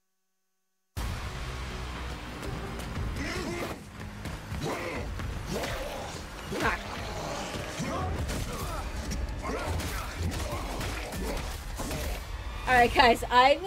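A creature growls and snarls.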